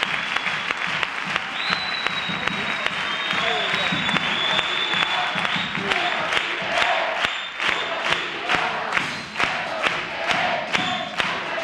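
A group of men sings together.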